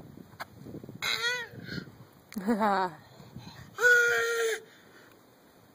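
A toddler squeals and shrieks loudly up close.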